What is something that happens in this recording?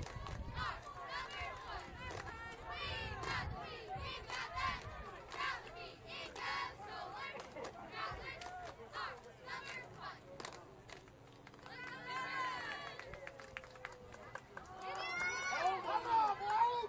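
Teenage boys chatter and shout nearby outdoors.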